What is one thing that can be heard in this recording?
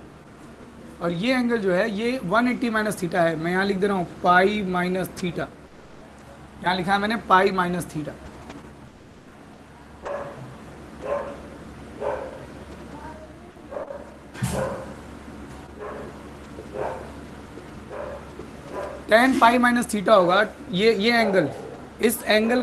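A young man speaks clearly and calmly, as if teaching, close by.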